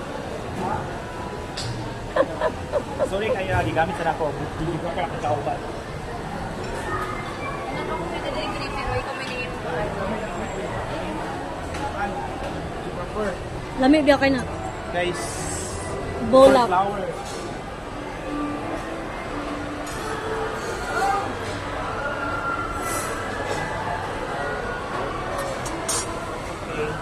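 A crowd murmurs steadily in a large, echoing hall.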